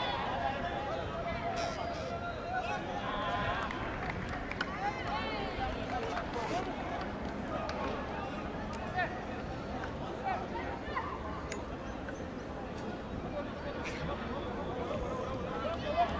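A sparse crowd in an open-air stadium chatters and calls out.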